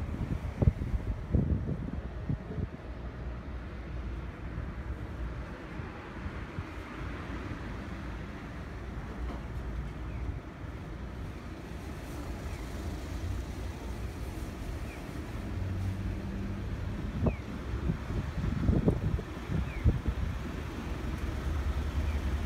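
A car engine rumbles steadily, heard from inside the car.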